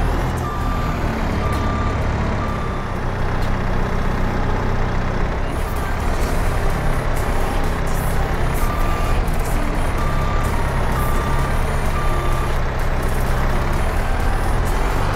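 A diesel engine rumbles steadily.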